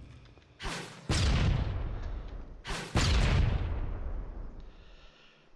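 A magic blast bursts with a loud whoosh and slowly fades.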